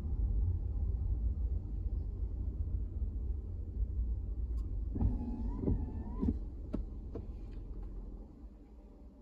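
A car rolls along in slow traffic, heard from inside.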